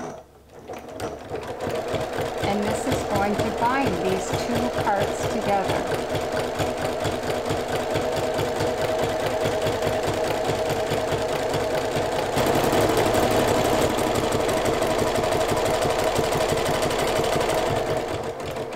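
A sewing machine whirs and stitches steadily.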